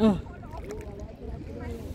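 Water splashes as a hand lifts out of shallow water.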